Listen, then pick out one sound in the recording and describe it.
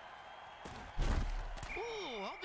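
Bodies crash together in a heavy tackle.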